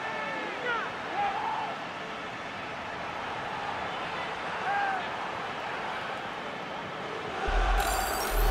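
A large crowd cheers and roars in a big stadium.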